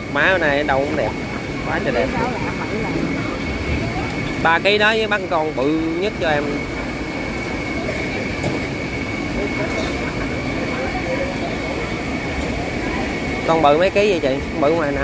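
A busy crowd chatters in the background.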